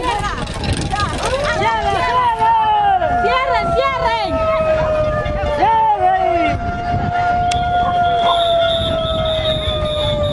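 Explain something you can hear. Many people run with quick footsteps on a paved road.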